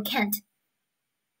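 A young woman speaks calmly into a microphone, close by.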